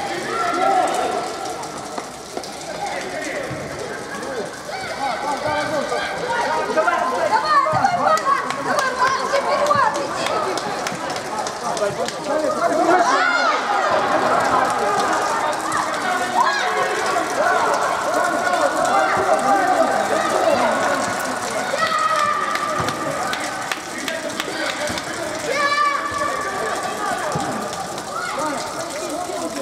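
Spectators chatter along the side.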